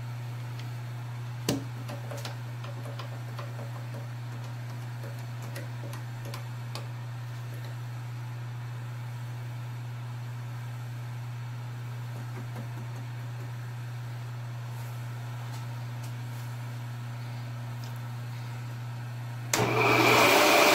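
A drill bit bores into metal with small scraping clicks.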